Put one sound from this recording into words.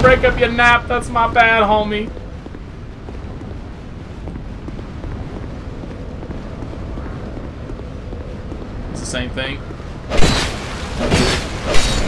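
Footsteps thud on stone.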